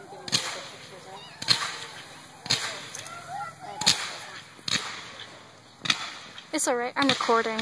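Fireworks bang loudly outdoors at a steady pace.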